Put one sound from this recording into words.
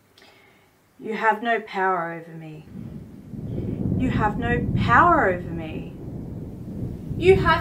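A woman speaks slowly and dramatically, close by.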